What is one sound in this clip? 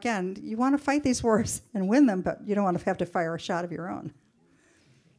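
A woman speaks with animation through a microphone.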